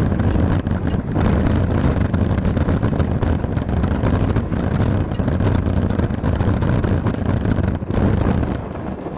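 Wind rushes and buffets loudly against a microphone while riding outdoors.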